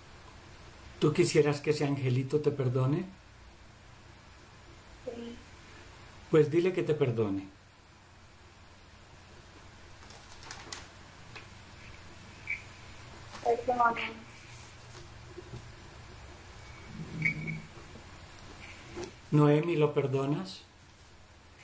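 An elderly man speaks calmly and slowly over an online call, in short phrases with long pauses.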